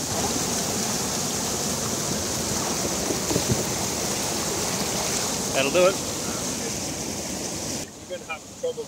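Water rushes and splashes loudly over rocks.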